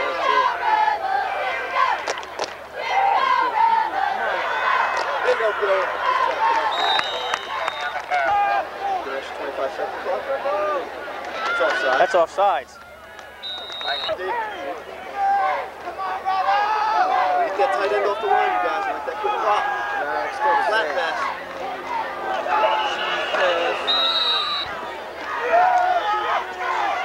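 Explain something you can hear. A crowd of spectators chatters and cheers nearby.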